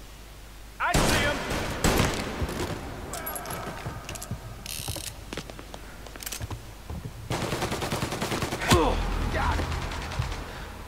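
Gunshots crack and echo through a large hall.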